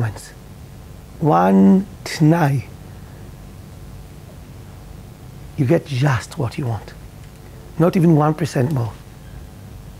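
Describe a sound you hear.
A middle-aged man speaks with animation into a clip-on microphone, in bursts with pauses.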